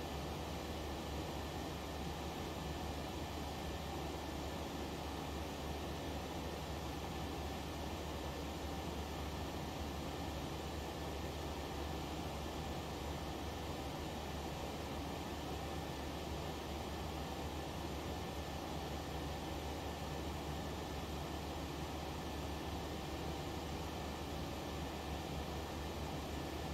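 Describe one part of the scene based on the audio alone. Jet engines hum steadily.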